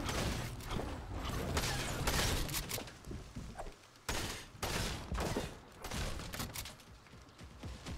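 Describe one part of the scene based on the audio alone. Wooden panels snap into place with quick knocks.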